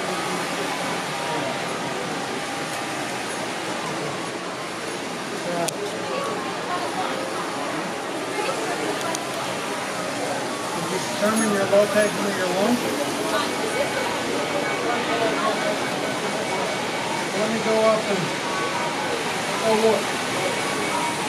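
Many people chatter in a busy indoor room.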